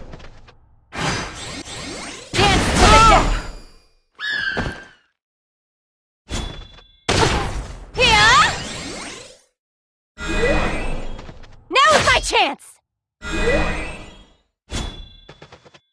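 Swords clash and strike with sharp hits.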